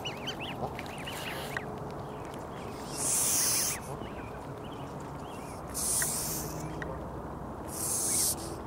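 Goslings peep in high, rapid chirps close by.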